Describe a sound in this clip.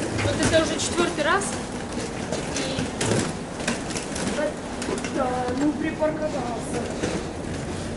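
A suitcase rolls over concrete.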